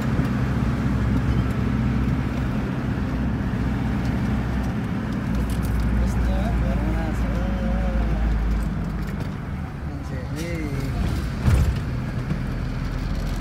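A vehicle engine hums steadily from inside the car.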